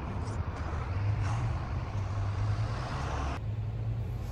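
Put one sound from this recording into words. A bus drives past close by.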